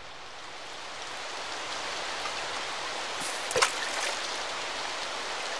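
A waterfall rushes and splashes.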